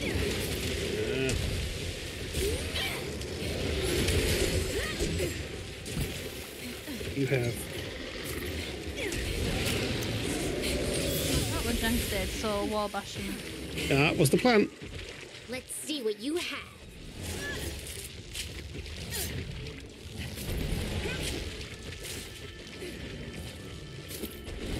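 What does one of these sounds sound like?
A large beast roars and growls.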